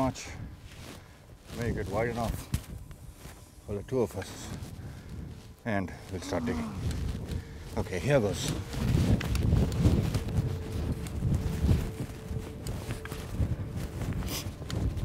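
Wind blusters against the microphone.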